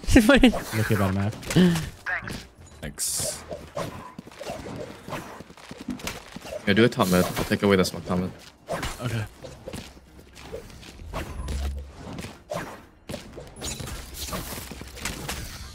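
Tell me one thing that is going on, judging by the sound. A knife swishes through the air.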